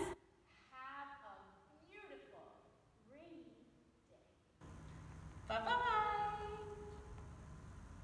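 An elderly woman sings in a large echoing hall.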